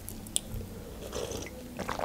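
A young woman sips a drink from a mug.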